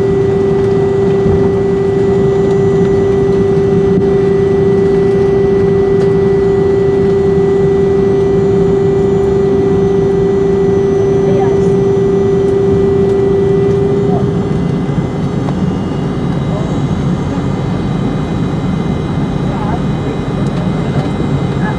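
A plane's wheels rumble over the runway.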